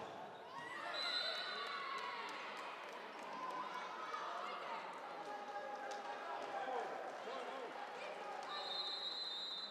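A crowd of spectators cheers and chatters in the stands.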